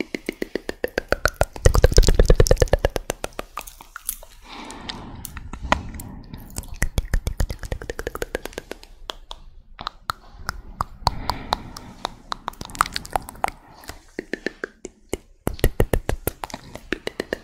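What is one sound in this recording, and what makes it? Long fingernails tap and click rapidly close to a microphone.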